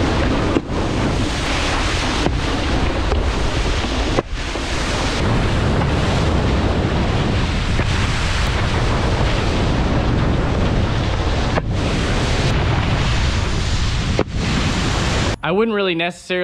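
A wakeboard rushes and sprays across water.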